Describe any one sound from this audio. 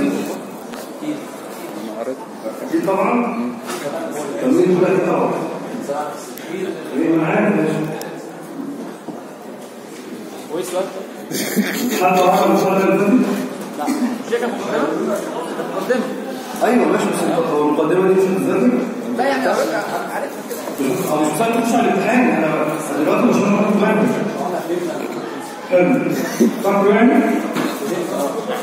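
A young man speaks with animation into a microphone, heard through a loudspeaker in an echoing room.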